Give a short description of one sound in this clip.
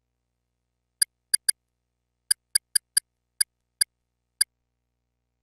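Soft clicks tick as a menu is scrolled.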